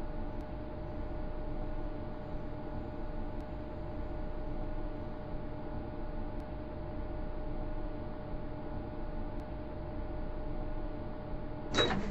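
A tram's electric equipment hums steadily.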